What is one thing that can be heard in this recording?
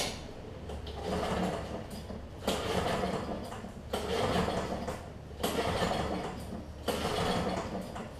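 A lawnmower's starter cord is yanked again and again with a rasping whirr.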